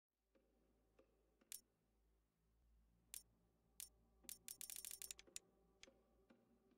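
Short digital menu clicks tick in quick succession.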